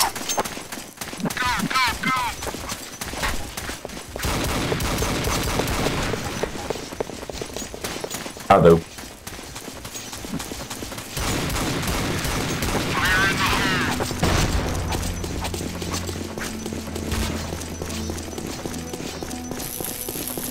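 Footsteps thud on the ground at a steady walking pace.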